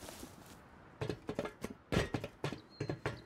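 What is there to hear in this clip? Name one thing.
Footsteps knock loudly on a hollow wooden floor.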